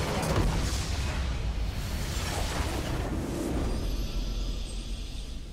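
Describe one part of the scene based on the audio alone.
Video game combat effects crackle and burst.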